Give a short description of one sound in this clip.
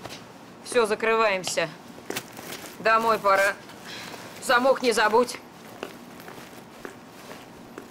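A bag rustles as it is handled.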